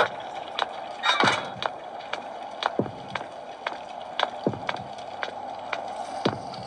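Footsteps tap at a quick, even pace.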